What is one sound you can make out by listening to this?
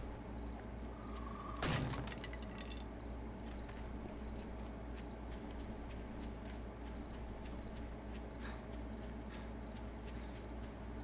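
Footsteps rustle steadily through dry grass.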